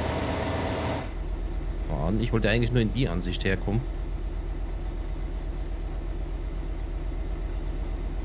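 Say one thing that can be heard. A train engine rumbles steadily with a regular clatter of wheels on rails.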